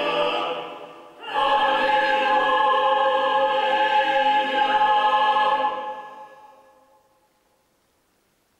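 A choir sings in harmony in a large echoing hall and the last chord rings out.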